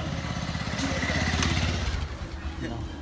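A motorbike engine idles close by.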